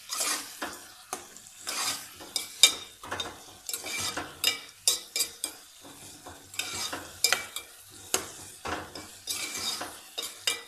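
A metal spoon stirs and scrapes against a metal pot, clinking now and then.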